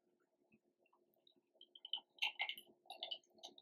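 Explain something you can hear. Thick liquid pours and drips softly into a glass jar.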